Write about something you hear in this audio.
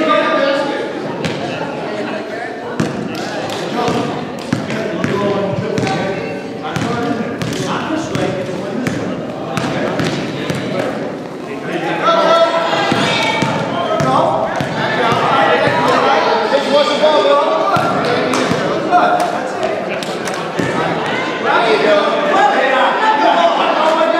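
A basketball bounces on a wooden gym floor, echoing in a large hall.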